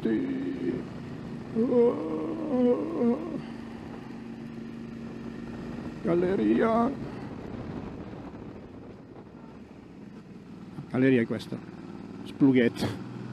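A motorcycle engine hums steadily, rising and falling in pitch.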